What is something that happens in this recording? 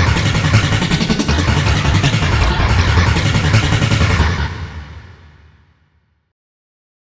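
Loud, distorted music blares and then fades away.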